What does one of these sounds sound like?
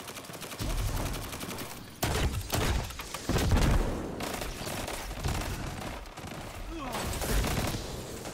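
Guns fire in rapid bursts with loud booming blasts.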